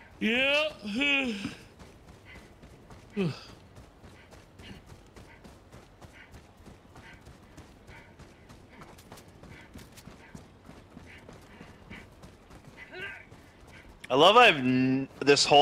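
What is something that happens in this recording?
A man shouts excitedly close to a microphone.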